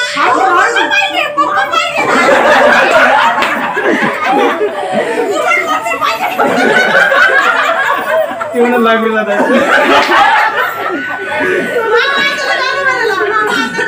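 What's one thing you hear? A group of women and children chatter and laugh loudly nearby.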